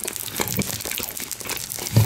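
A knife scrapes on a plate.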